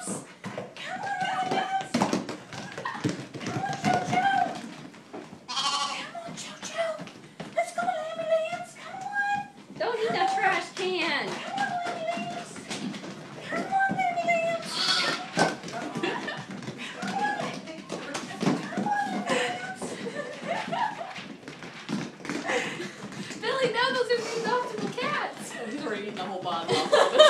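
Small hooves clatter and tap on a hard floor.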